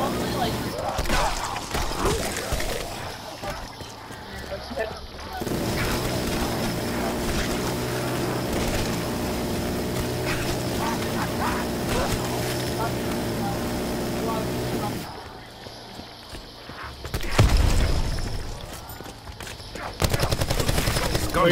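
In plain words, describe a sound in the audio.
Guns fire in rapid, loud bursts.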